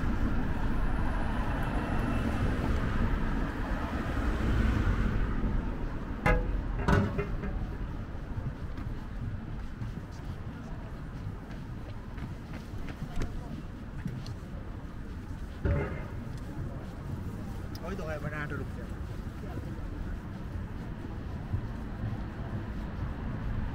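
Footsteps pass on a pavement.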